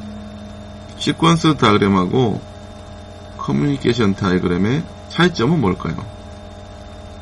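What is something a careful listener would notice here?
A young man speaks calmly and close to a microphone, as if on an online call.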